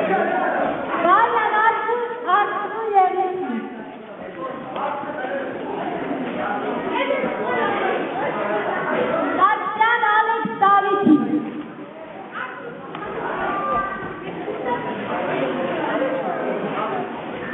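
A young woman speaks brightly to the children.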